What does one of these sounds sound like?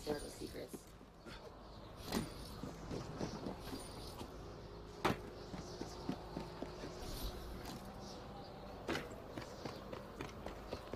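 Quick footsteps patter across a rooftop.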